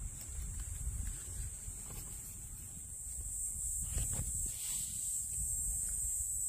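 Fingers brush and rustle dry pine needles and leaves.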